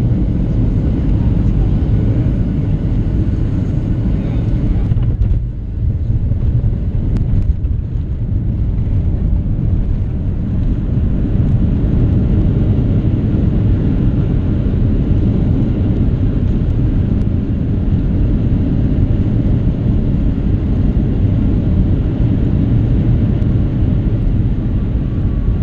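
A jet plane's engines roar steadily, heard from inside the cabin.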